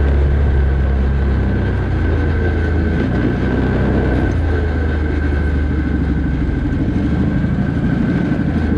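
Tyres crunch over loose sand and gravel.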